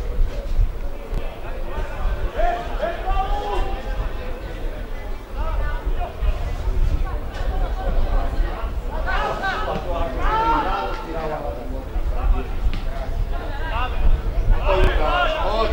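A football thuds off a player's foot.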